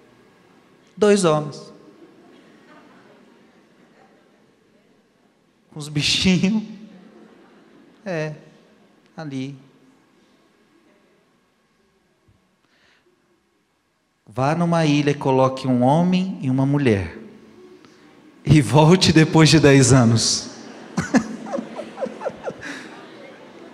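A man speaks with animation into a microphone, in a large echoing hall.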